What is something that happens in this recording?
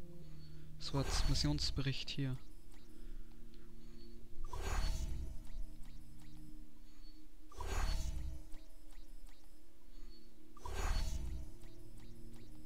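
Soft whooshing swishes sound again and again.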